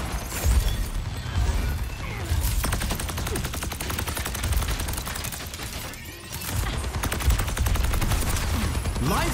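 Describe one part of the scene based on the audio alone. A rapid-fire weapon shoots in fast bursts.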